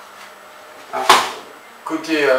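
A fish slaps down onto a wooden cutting board.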